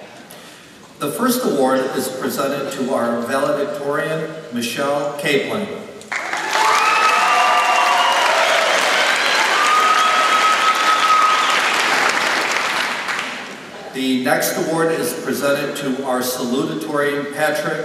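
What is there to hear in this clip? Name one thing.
A man speaks clearly through a microphone in a large echoing hall.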